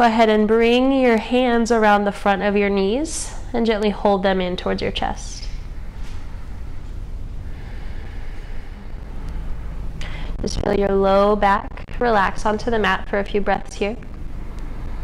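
A woman speaks calmly and slowly nearby.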